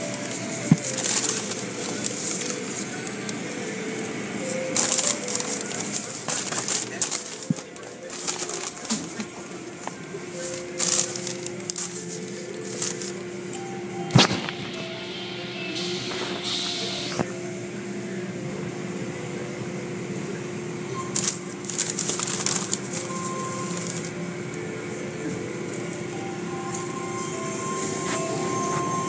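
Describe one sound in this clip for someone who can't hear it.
Water sprays and splashes.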